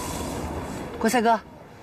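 A young woman speaks briefly and softly nearby.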